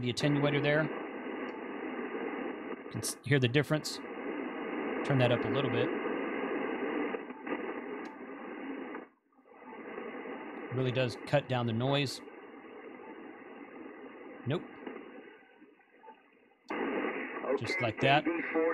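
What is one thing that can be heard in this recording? Fingers click buttons on a radio.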